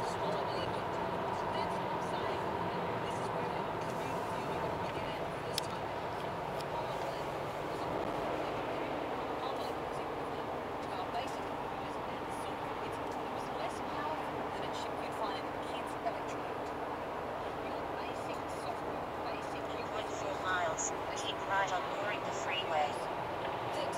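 A car engine hums steadily while driving on a highway.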